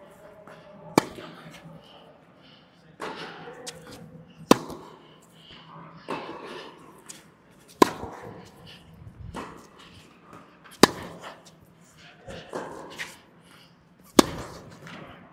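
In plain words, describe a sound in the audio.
Tennis balls are struck sharply back and forth in a large echoing hall.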